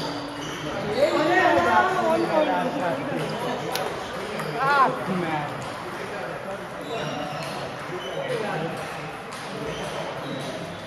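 Many people chatter in a large echoing hall.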